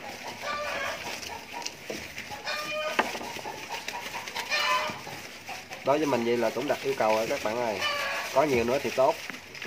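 Dry leaves rustle as piglets shuffle about.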